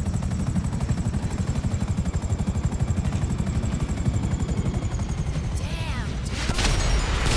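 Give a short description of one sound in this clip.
A helicopter's rotor thumps in a fast beat.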